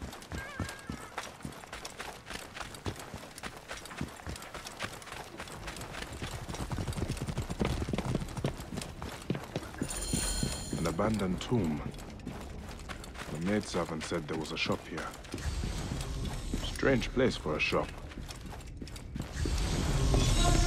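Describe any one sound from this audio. Quick footsteps patter over dirt and wooden boards.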